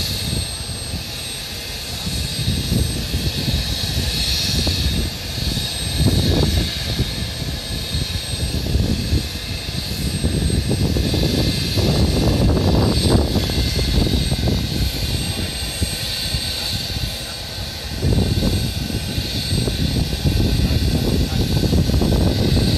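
A military helicopter's turbine whines at a distance across an open airfield.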